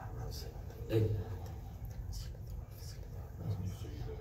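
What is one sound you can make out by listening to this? An elderly man speaks quietly close by.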